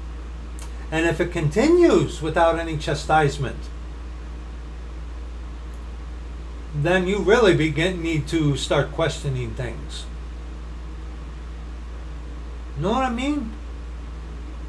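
A middle-aged man speaks calmly in short bursts, close to a microphone.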